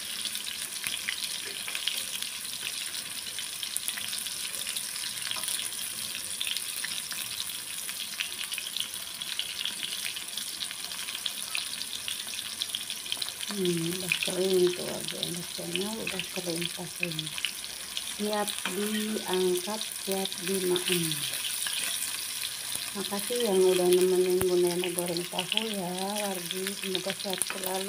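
A metal spatula scrapes and taps against a pan.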